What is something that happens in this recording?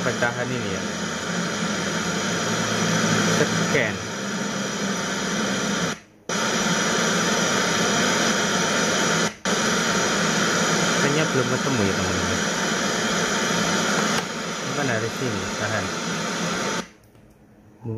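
A radio loudspeaker hisses with loud static, cutting out briefly as the station changes.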